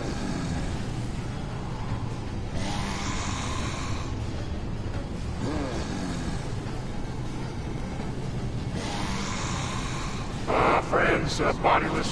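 Ghostly wind whooshes and swirls in low gusts.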